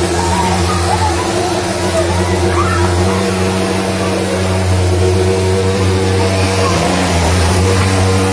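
Children shout excitedly nearby.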